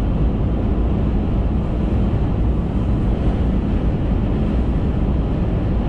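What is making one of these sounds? Wind rushes against a car's windscreen.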